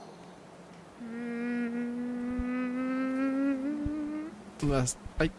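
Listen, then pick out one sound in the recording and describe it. A young man hums a long, drawn-out note close to a microphone.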